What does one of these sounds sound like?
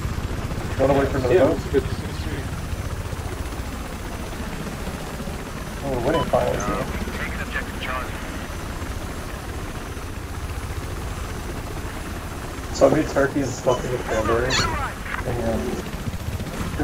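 A helicopter's rotor thumps and its engine drones steadily.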